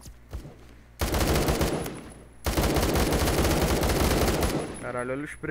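Rapid gunfire rattles out in loud bursts.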